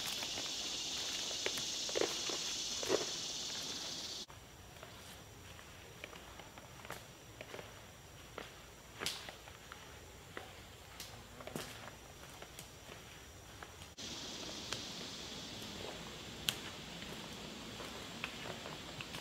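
Footsteps crunch through dry leaves and snap twigs on the forest floor.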